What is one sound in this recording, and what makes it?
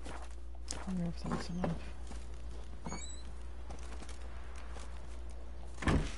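Footsteps tread on soft ground.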